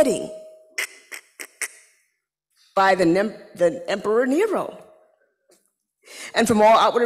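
A woman speaks with animation into a microphone in a reverberant room.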